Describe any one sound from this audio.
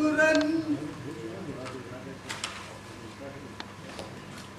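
A man speaks quietly in reply.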